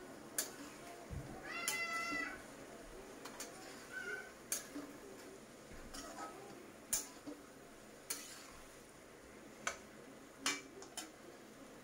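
A metal spatula scrapes and clinks against a metal pan.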